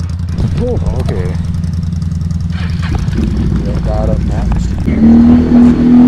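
A quad bike engine idles and putters close by.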